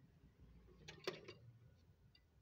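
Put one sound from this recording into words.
A record player's arm knocks and clicks as it is handled.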